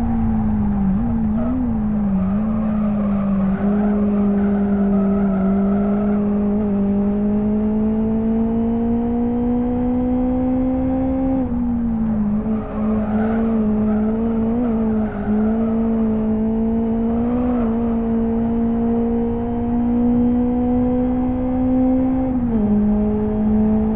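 A racing car engine drones loudly, its pitch rising and dropping with each gear change.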